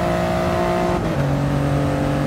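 A racing car engine drops sharply in pitch as the gear shifts up.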